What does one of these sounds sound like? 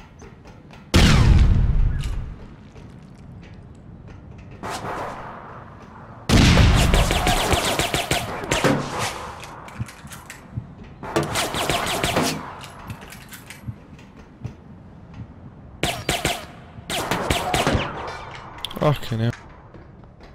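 Rapid gunshots crack out in short bursts.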